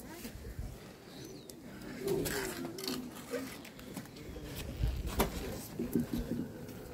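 A crowd of men and women murmur and talk quietly outdoors.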